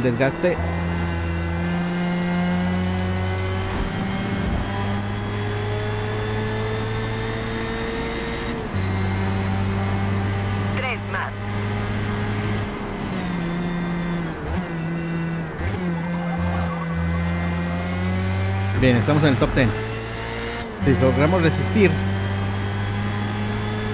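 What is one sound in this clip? A racing car engine whines loudly, rising and falling in pitch through gear shifts.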